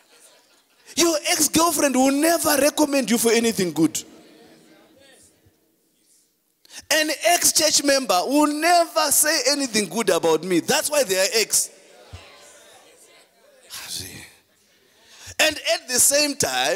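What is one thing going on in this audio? A man preaches into a microphone with animation, his voice filling a large echoing hall.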